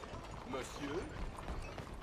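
Wooden carriage wheels rattle past.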